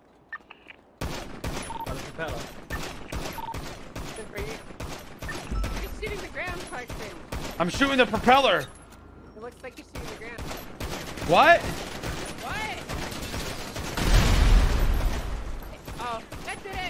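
A pistol fires shot after shot in quick bursts.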